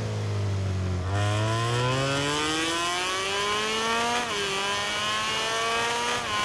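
A motorcycle engine roars and climbs steadily in pitch as it speeds up, dipping briefly at each gear change.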